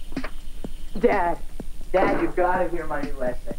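A woman calls out loudly from a short distance.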